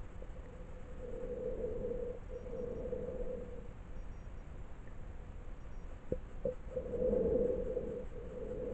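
Water churns with a low, muffled rumble, heard from underwater.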